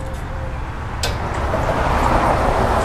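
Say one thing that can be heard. Fuel gushes into a car's tank.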